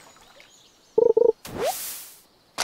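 A short bright chime rings as a fish is caught.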